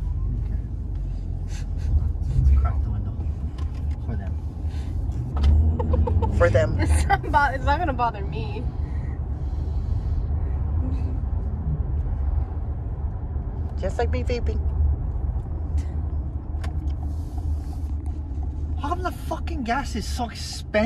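A car engine hums and tyres rumble steadily on the road.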